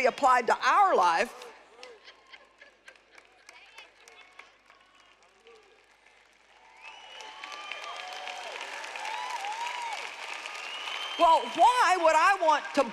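A middle-aged woman speaks with animation through a microphone in a large echoing hall.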